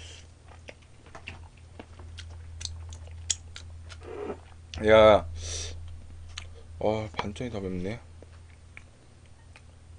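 A young man chews and slurps food close to a microphone.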